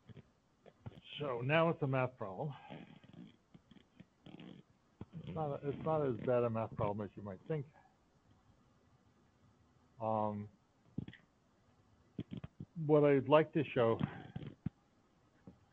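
A man explains calmly, heard through an online call.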